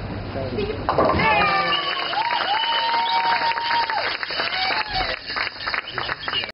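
Women cheer and shout with excitement.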